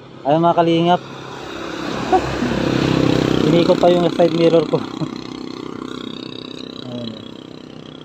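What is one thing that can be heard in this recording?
A motor tricycle drives past with a rising and fading engine rumble.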